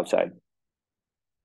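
A man speaks a brief word close to a microphone.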